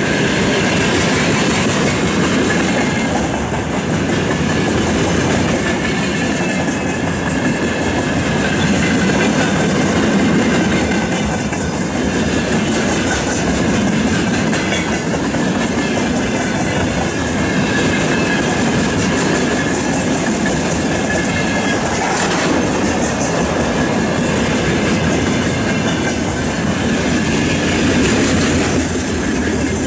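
Train wheels clatter rhythmically over rail joints.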